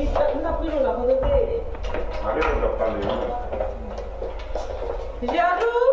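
Suitcase wheels roll across a hard floor.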